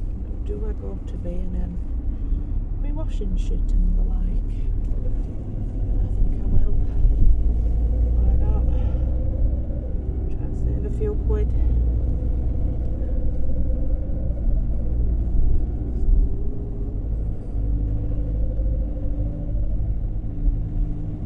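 A car's engine and road noise rumble steadily from inside the car.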